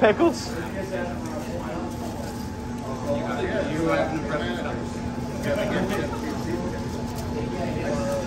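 Gloved hands rustle while folding a tortilla.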